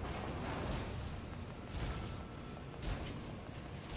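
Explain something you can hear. Gunfire and bullets burst in a video game.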